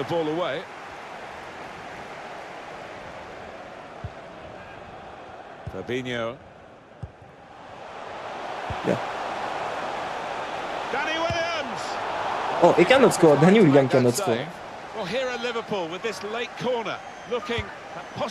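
A large stadium crowd roars steadily, swelling louder as play nears the goal.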